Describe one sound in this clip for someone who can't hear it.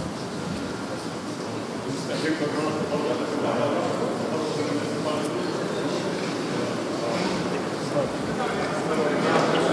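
A crowd of men murmurs and talks all around, close by and echoing.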